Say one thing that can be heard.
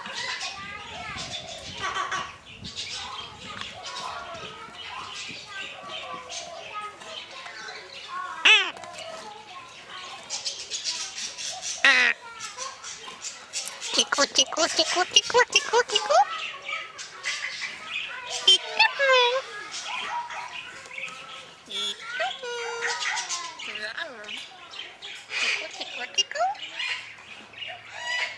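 An eclectus parrot chatters and mimics speech close by.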